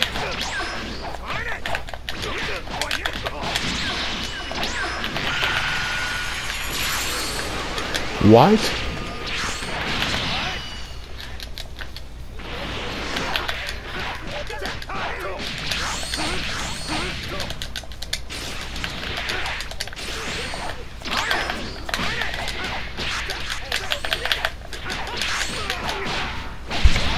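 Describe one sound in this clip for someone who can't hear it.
Punches and kicks thud and smack in quick bursts.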